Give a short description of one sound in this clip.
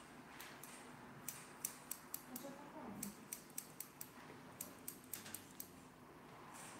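Scissors snip quickly through hair close by.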